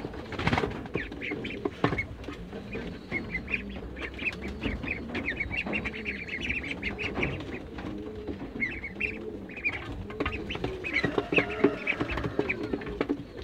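Young ducks peep and chirp rapidly close by.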